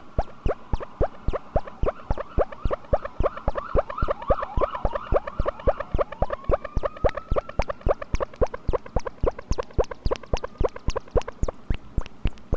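A synthesizer tone sweeps and changes in pitch.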